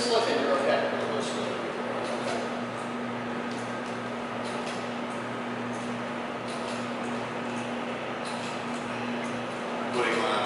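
A motor hums steadily.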